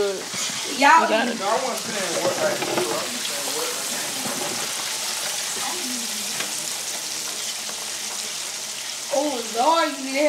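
Hot oil sizzles and bubbles steadily in a deep fryer.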